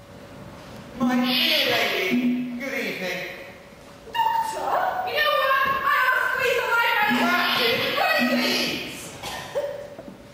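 Several young people shout excitedly.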